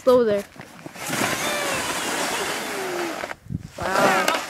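A plastic sled scrapes and hisses as it slides over snow.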